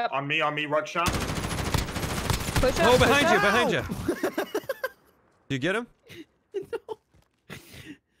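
A rifle fires several sharp gunshots.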